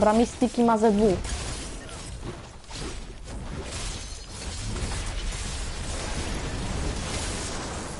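Blades swish and clash in a fight in a video game.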